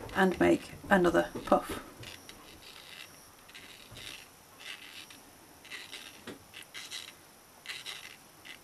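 A crochet hook softly rustles and scrapes through yarn.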